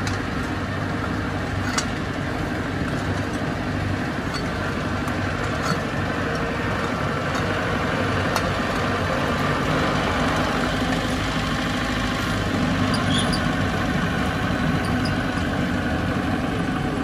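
A small diesel engine rumbles steadily nearby.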